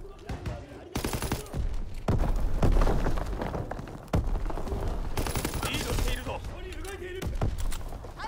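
A rifle fires in rapid bursts of loud shots.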